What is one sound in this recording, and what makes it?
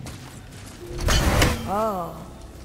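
An axe strikes rock with a crunching crack.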